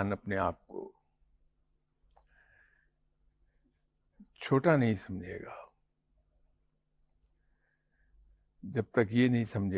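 An older man speaks calmly into a clip-on microphone, with long pauses.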